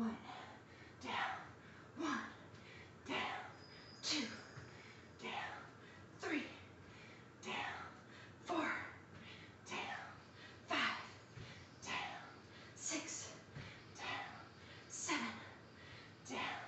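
A woman exhales sharply with each kick.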